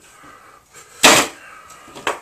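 A small plastic figure thuds onto a padded mat.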